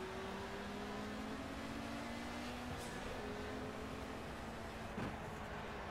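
A racing car engine roars at high revs as it speeds up.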